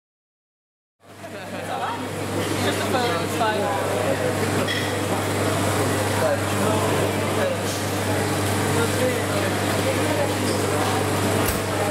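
A crowd chatters with a low murmur in an echoing indoor space.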